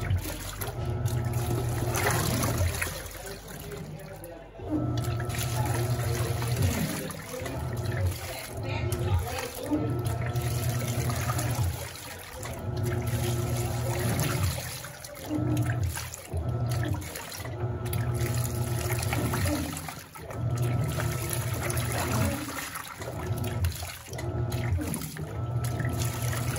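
A washing machine motor hums in bursts as the agitator swishes back and forth.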